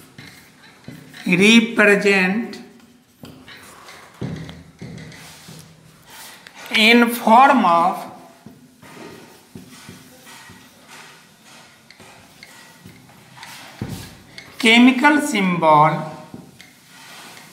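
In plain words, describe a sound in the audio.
An elderly man speaks calmly in short bursts, close by.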